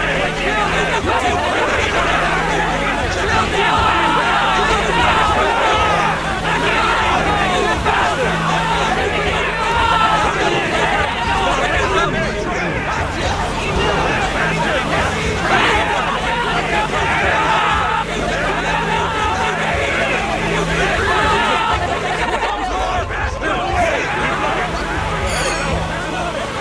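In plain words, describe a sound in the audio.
Vehicle engines hum steadily.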